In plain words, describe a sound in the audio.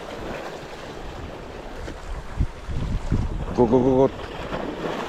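Waves wash and lap gently against rocks.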